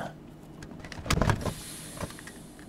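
A car trunk lid thumps open.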